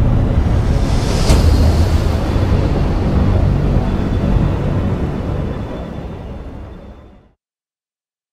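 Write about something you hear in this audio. A spacecraft engine roars with a deep rumble and slowly fades away.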